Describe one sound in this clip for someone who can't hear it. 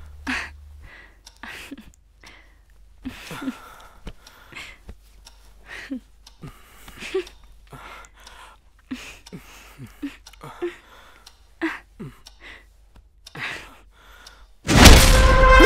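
A young woman laughs and giggles softly close by.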